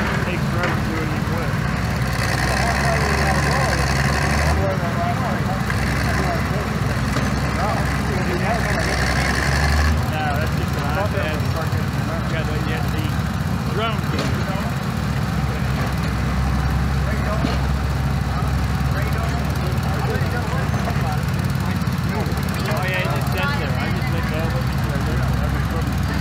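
Small engines of digging machines chug and rumble steadily.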